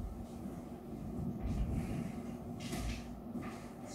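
Chairs scrape and creak as people sit down.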